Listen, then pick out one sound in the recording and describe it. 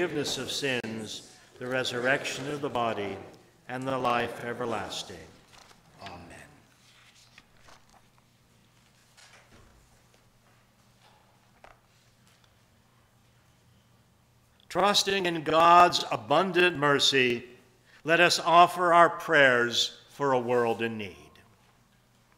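An elderly man reads aloud calmly into a microphone in an echoing room.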